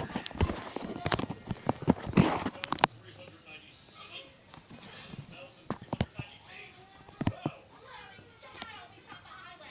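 A television plays a cartoon soundtrack nearby.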